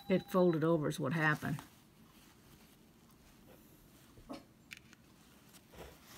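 Fabric rustles softly as fingers fold and pin it.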